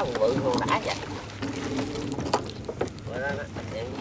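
A wooden pole splashes in the water.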